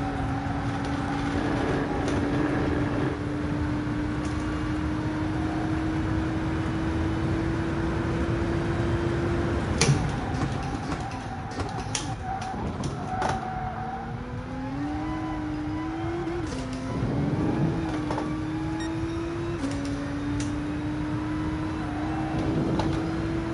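A racing car engine drones steadily, dropping in pitch as the car brakes and rising again as it speeds up.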